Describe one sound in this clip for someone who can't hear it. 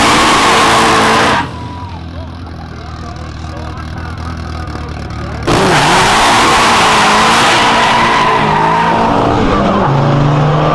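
A car engine roars loudly.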